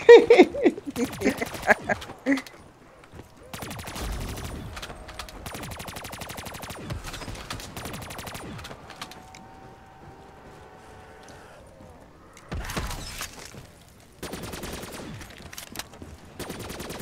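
An automatic gun fires rapid bursts of shots.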